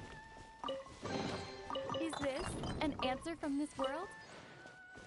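A treasure chest opens with a bright, sparkling chime.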